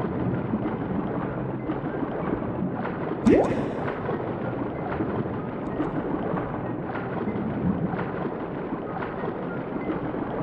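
Water swirls and burbles steadily underwater.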